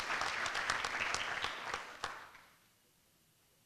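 An audience applauds in a large hall, then fades out.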